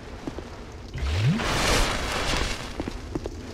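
A magical sparkle swells briefly with a rising whoosh.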